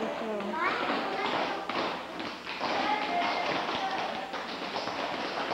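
Young children chatter and call out in a room.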